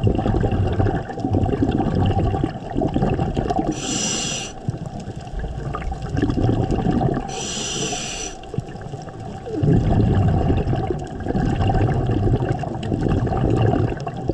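Water rumbles and swishes steadily underwater.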